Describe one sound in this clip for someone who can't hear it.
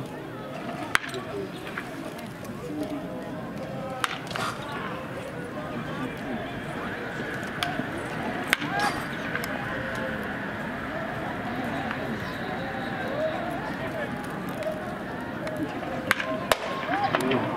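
A baseball bat cracks against a ball in the distance.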